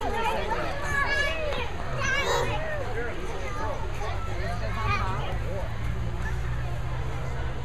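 Toddler girls babble and chatter in high voices close by.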